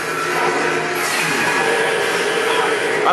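Laser blasts zap and whine.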